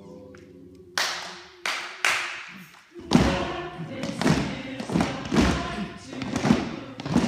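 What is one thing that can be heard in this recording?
A group of people claps hands in a steady rhythm.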